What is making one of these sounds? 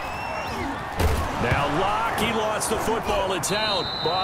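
Football players collide with heavy thuds during a tackle.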